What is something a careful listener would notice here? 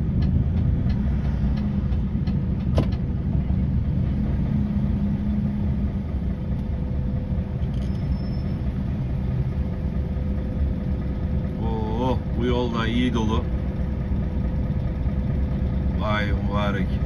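A vehicle engine rumbles low and steady throughout.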